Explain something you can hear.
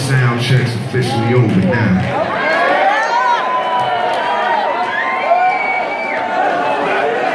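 A man raps into a microphone through loud speakers in a large hall.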